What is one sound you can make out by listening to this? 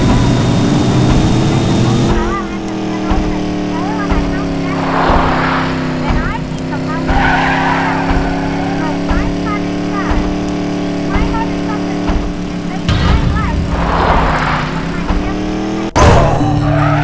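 A game vehicle's engine hums steadily.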